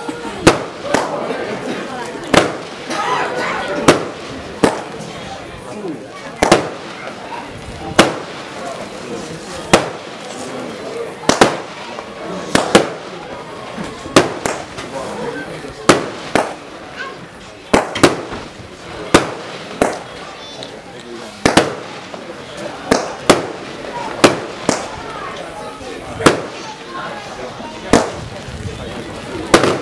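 Fireworks crackle and fizzle after each burst.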